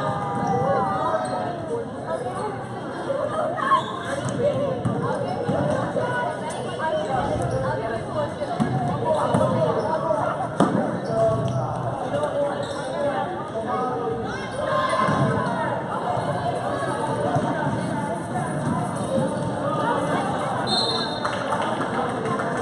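A crowd chatters throughout a large echoing gym.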